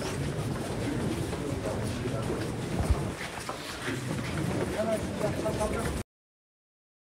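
Footsteps shuffle on a stone floor.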